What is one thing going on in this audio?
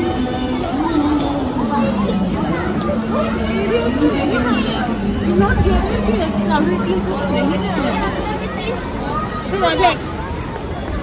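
Children shout and chatter while playing nearby.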